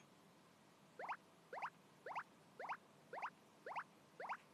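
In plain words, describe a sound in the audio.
Short electronic plinks sound one after another.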